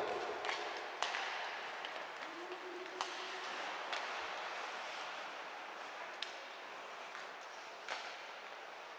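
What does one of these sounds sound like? Hockey sticks clack sharply against the puck.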